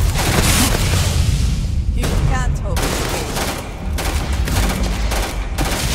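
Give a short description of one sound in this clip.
Rapid gunshots crack and boom.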